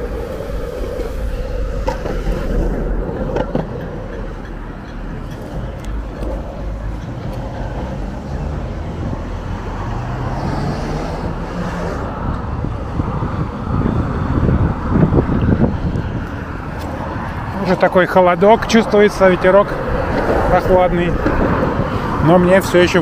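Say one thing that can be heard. Roller skate wheels rumble along a paved path.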